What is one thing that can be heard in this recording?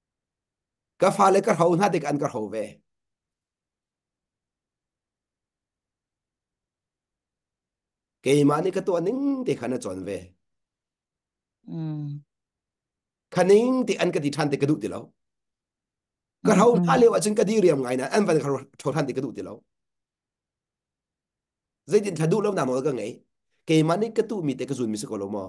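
A middle-aged man speaks calmly and earnestly into a microphone, heard as if over an online call, with long pauses.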